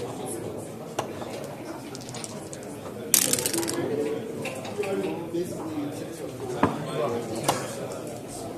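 Game pieces click on a board.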